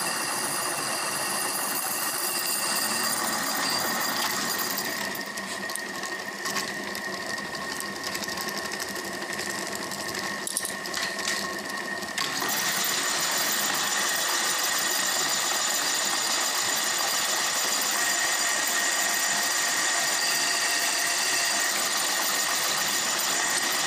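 A cutting tool scrapes and hisses against spinning metal.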